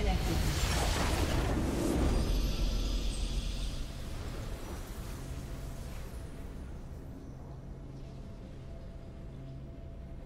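A bright triumphant fanfare swells and then slowly fades away.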